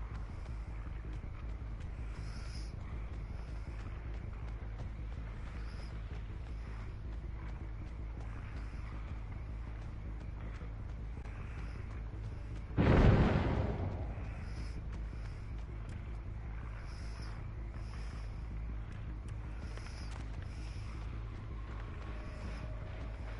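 Footsteps rustle through grass at a steady run.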